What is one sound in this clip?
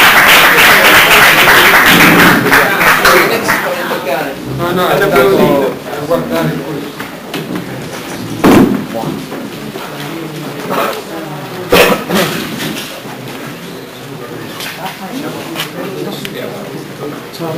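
A crowd of people chatters loudly in a large room.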